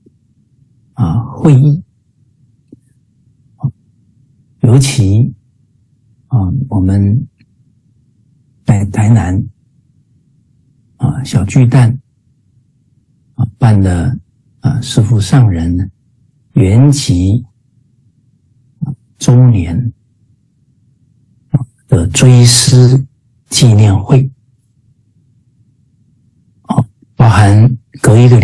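A middle-aged man speaks calmly in short phrases with pauses, heard through an online call.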